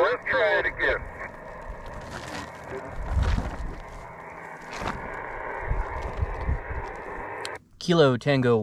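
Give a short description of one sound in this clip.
Radio static hisses steadily.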